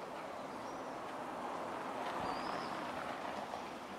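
A car drives past close by on a cobbled street.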